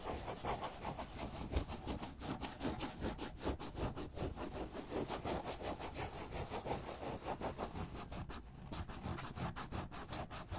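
Hands rustle and crinkle a cardboard box close by.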